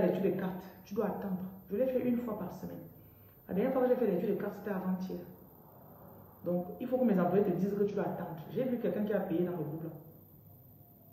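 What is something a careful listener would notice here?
A woman speaks calmly and close to a microphone, in short bursts with pauses.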